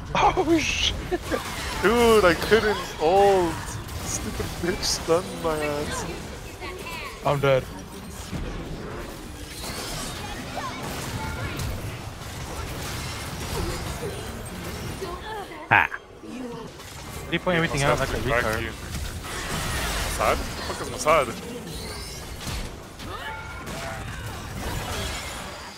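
Spell effects whoosh and blast in a fast game fight.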